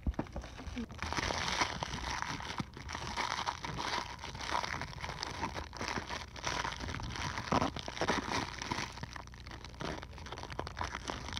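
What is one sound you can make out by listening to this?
Plastic wrap crinkles and rustles close by.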